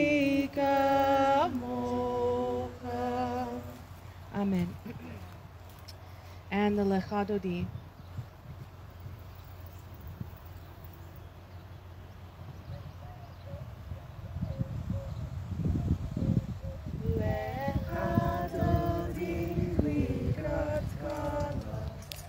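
A woman sings nearby, holding long notes.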